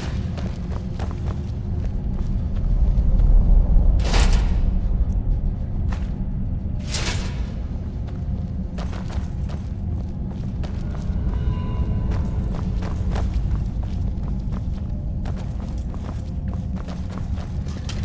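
A low rumble hums steadily in a cavernous space.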